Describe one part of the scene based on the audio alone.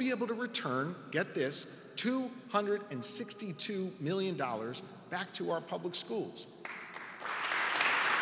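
A man speaks forcefully into a microphone in a large echoing hall.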